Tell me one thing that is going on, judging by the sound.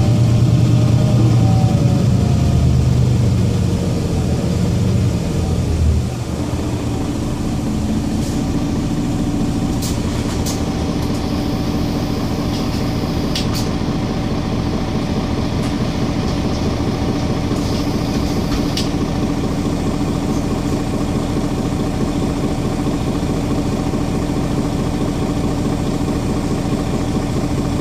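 A bus engine hums and rumbles steadily from inside the bus.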